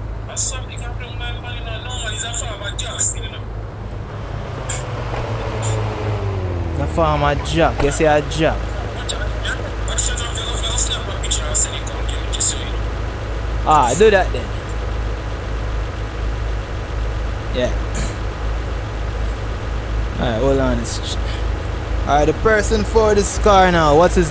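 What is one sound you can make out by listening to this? A car engine idles with a low steady rumble.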